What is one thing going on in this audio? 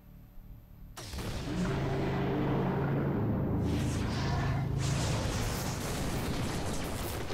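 A glowing portal roars with a deep, steady hum.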